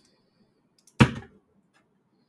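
A sharp click sounds as a plastic part is handled.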